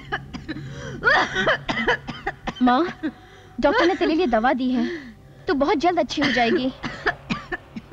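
A woman speaks emotionally and close by.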